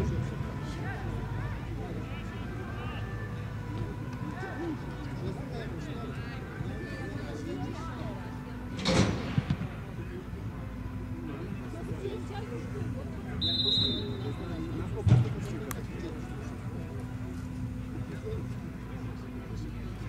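Footballers shout to each other far off across an open pitch.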